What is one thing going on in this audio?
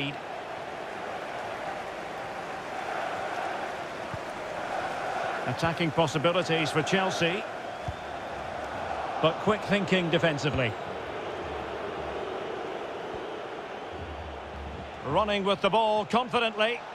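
A large stadium crowd murmurs and cheers steadily in the distance.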